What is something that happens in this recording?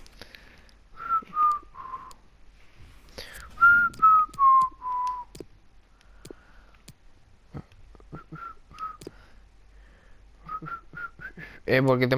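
Short electronic menu tones chime in quick runs.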